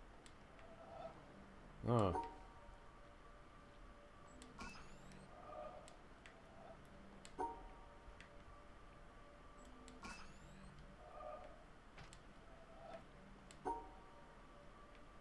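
Soft electronic tones chime and hum now and then.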